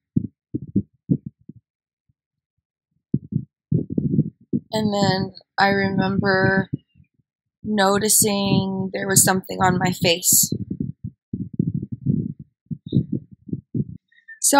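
A young woman speaks quietly and slowly, close by.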